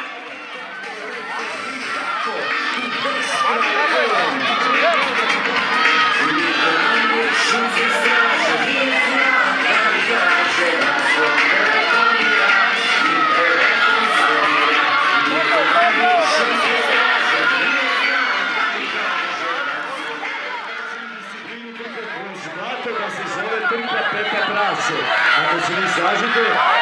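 A crowd of children cheers and shouts loudly outdoors.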